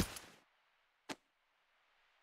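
A blade clatters to the ground.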